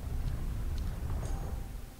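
Electricity crackles and buzzes.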